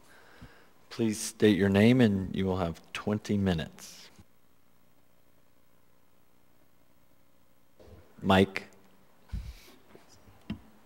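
A man speaks through a microphone, reading out calmly.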